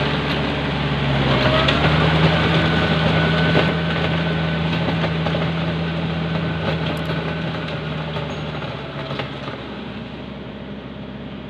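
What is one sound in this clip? Tractor wheels churn and splash through muddy water.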